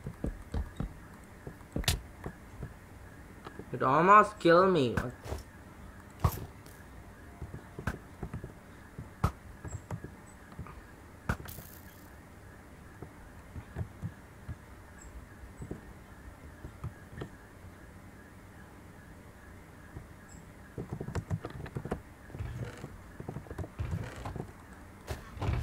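Short clicks and knocks of a video game sound again and again.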